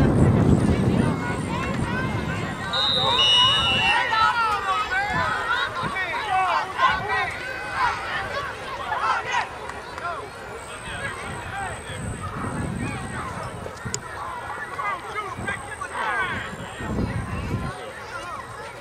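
A crowd of spectators cheers and shouts excitedly outdoors.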